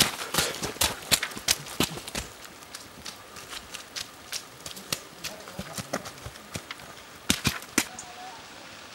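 Running footsteps thud and crunch on a rocky trail.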